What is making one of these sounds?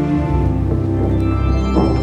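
Dancers' feet tap and slide across a wooden stage.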